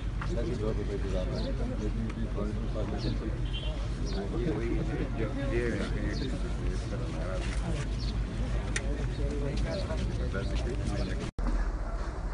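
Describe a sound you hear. A crowd of men talk over one another close by.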